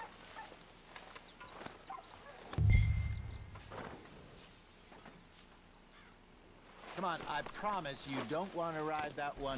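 Birds chirp outdoors.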